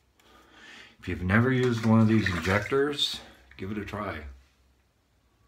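A middle-aged man speaks up close, calmly.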